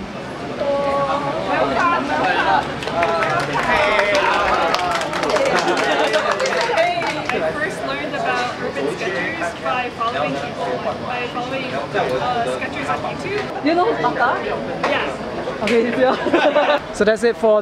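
A crowd of young people talks and laughs nearby.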